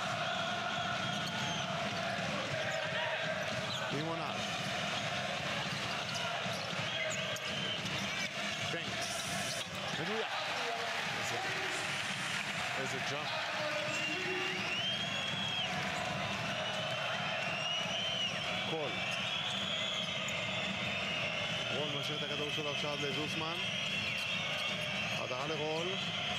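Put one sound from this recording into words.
A large crowd cheers and chants loudly.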